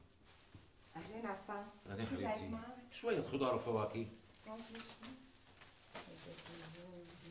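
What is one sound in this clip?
A middle-aged man talks calmly nearby.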